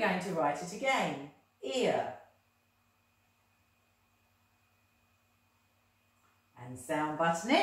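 A woman speaks clearly and slowly close by, as if teaching.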